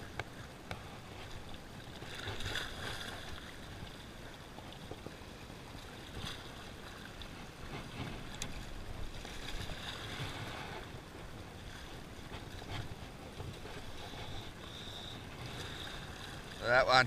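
Small waves lap and splash gently against rocks.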